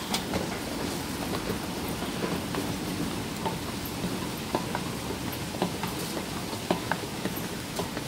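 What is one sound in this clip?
A moving walkway rumbles steadily.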